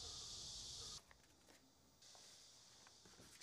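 A sheet of paper rustles in a hand.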